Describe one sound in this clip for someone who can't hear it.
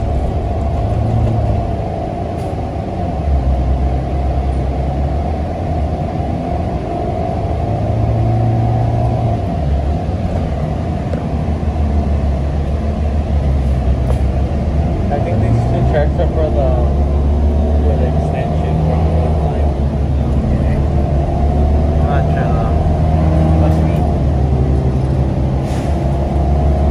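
A bus engine hums and drones steadily, rising and falling in pitch as the bus moves.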